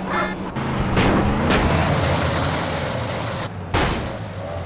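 Metal scrapes and grinds as a car flips onto its side.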